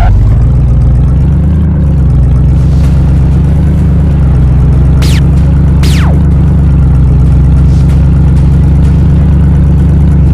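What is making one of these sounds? A video game sports car engine drones at speed.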